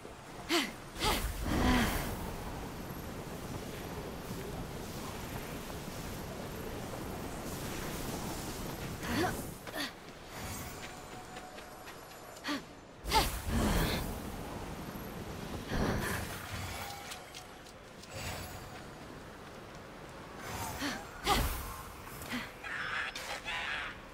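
Bursts of magic whoosh and crackle.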